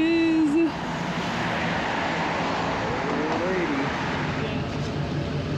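A car drives past on the street.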